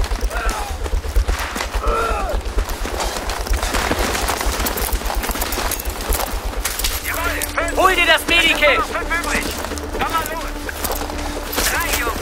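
Gunfire cracks in rapid bursts nearby.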